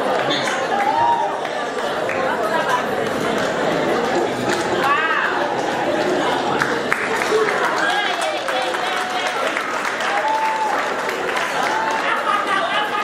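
A large crowd of men and women chatters and murmurs close by.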